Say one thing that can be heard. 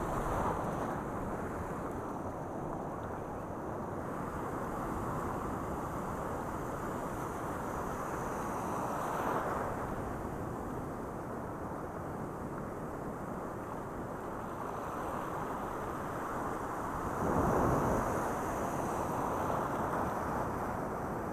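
Surf roars and washes over the shore.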